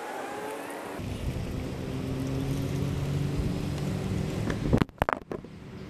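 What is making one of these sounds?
A car engine hums as a car drives slowly nearby.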